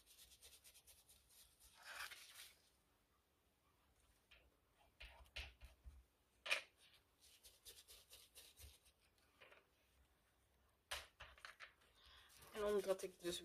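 A foam ink blending tool scrubs rapidly against paper in quick, rasping strokes.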